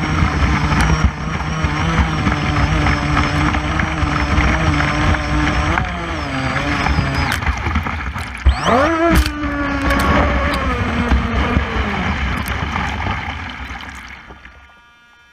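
A small boat's electric motor whines loudly and revs up and down.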